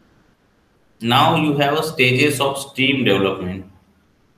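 A young man speaks calmly into a microphone, as if in an online lecture.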